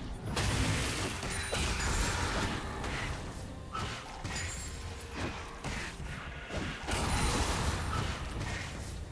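Magic blasts and sword clashes burst repeatedly in a fast video game battle.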